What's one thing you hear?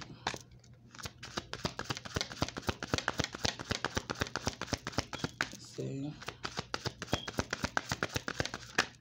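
Playing cards riffle and flutter rapidly as they are shuffled by hand.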